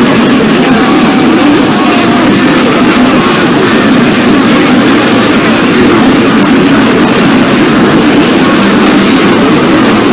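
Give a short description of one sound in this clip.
Loud dance music plays steadily.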